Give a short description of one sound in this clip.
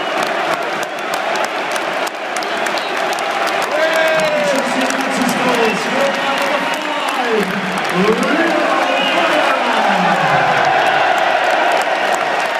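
A large stadium crowd sings loudly together outdoors.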